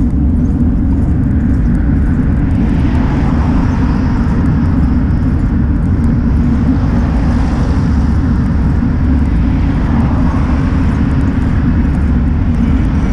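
Wind rushes and buffets loudly past a moving vehicle.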